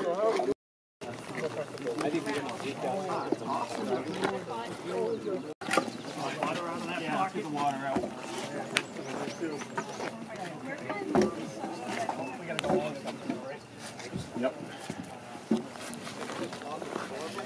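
Several men chat outdoors in a crowd.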